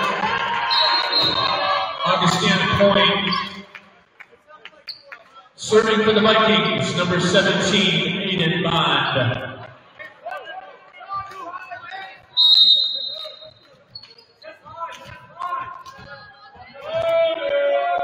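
A volleyball is hit with sharp smacks.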